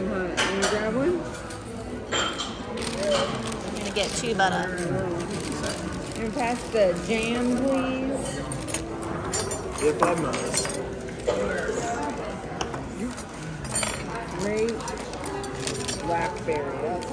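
Men and women talk and chatter close by.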